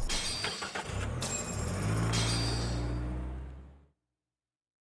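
A car engine rumbles low and fades away.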